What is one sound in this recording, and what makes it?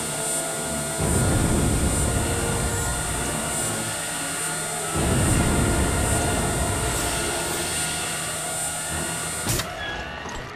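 A heavy metal vault wheel grinds and rumbles as it turns.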